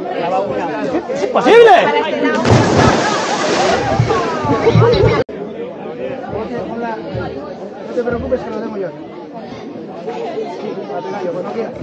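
A crowd of young people cheers and shouts outdoors.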